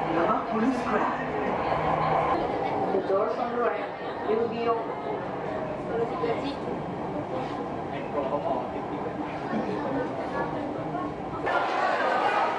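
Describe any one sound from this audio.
A train rumbles and hums along the track.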